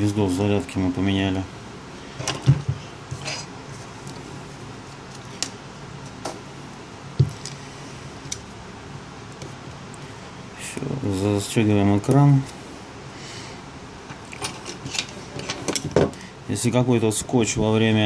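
Small plastic parts click and tap as a device is handled and pried apart.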